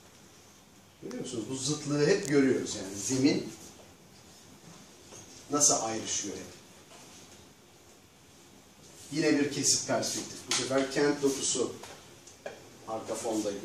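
A man talks calmly in a room with a slight echo, pausing between phrases.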